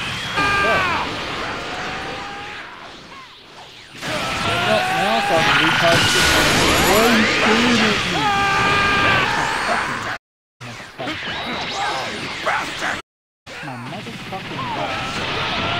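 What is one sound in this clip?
Energy blasts whoosh and burst with loud rushing bursts.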